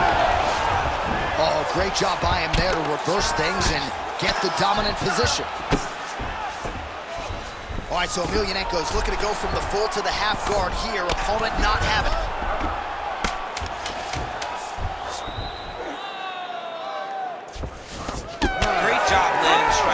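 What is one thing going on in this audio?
Fists thud against a body in quick blows.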